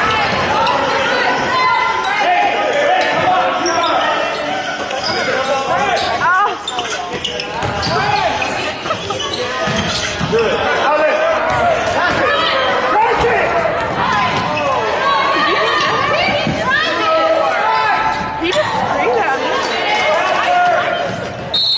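A basketball thumps as players dribble it.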